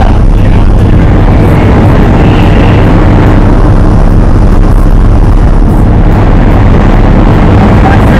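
A small plane's engine drones loudly and steadily from inside the cabin.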